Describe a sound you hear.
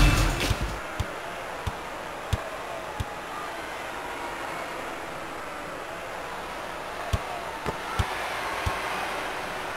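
A basketball bounces on a hard court a few times.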